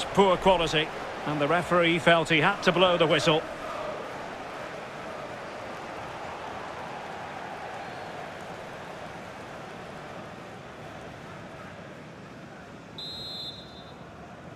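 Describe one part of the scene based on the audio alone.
A large crowd murmurs and roars steadily in a big stadium.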